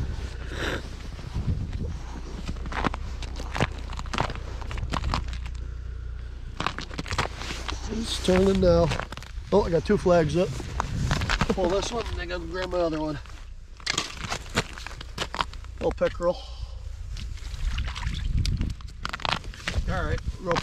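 Wind rumbles across open ground outdoors.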